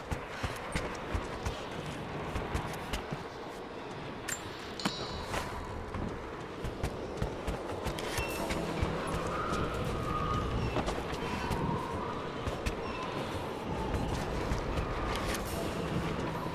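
Footsteps crunch on snow and wooden boards.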